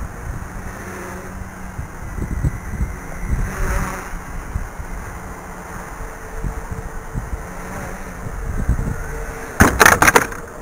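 A small drone's propellers buzz steadily overhead.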